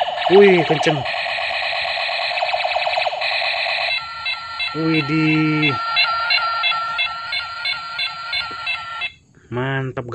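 A toy plays loud, buzzing electronic sound effects and a beeping tune.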